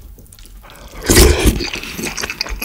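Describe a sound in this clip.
A young man slurps food loudly up close.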